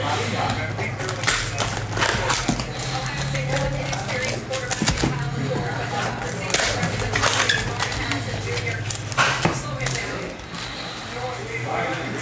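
Plastic card wrappers crinkle and rustle in hands.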